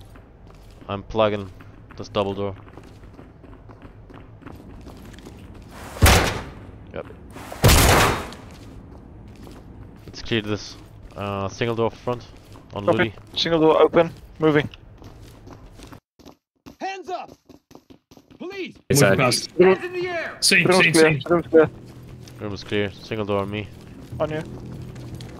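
Boots step on a hard floor.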